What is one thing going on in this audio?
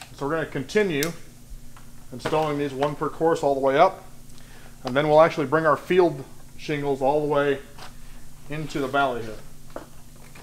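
A man talks calmly and clearly up close.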